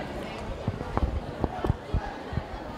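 A football is kicked across a field.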